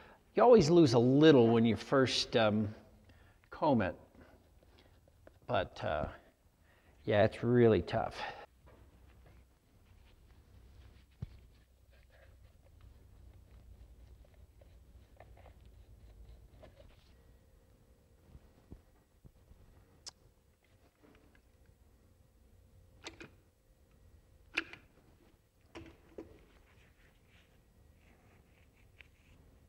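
A paintbrush dabs and brushes softly against a mask.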